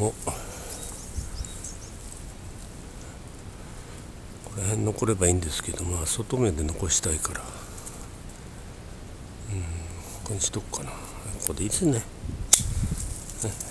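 Pruning shears snip through small branches.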